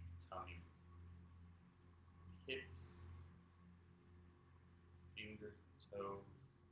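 A man speaks calmly and softly, close by, with pauses.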